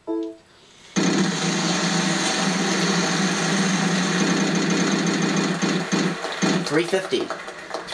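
A prize wheel spins with rapid clicking that slows down.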